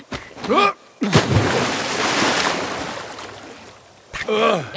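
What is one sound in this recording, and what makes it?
Water splashes loudly as someone jumps in.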